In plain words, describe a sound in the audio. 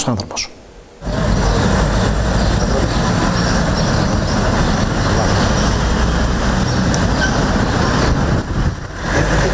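Traffic rumbles steadily outdoors on a street.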